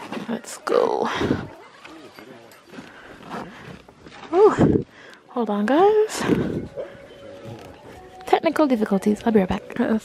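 Tent fabric rustles as a hand handles it.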